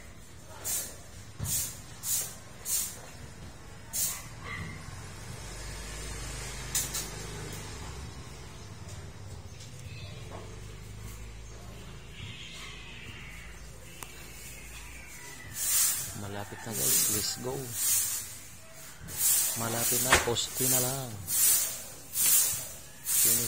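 A paintbrush swishes against a rough wall in short strokes.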